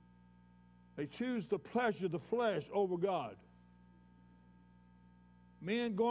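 An elderly man preaches with emphasis through a microphone, pausing between phrases.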